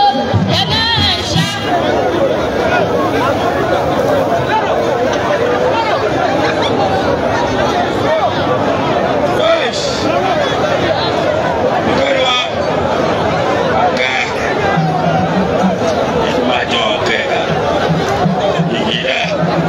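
A large crowd chatters and cheers loudly outdoors.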